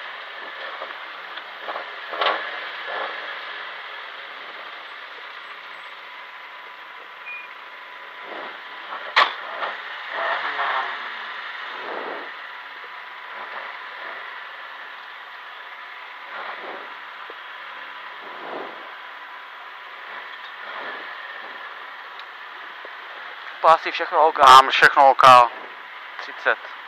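A car engine roars and revs steadily inside the cabin.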